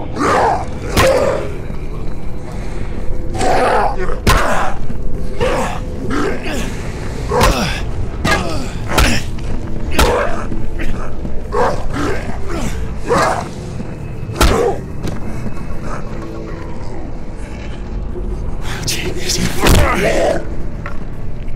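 Heavy blows thud and smack against a body, again and again.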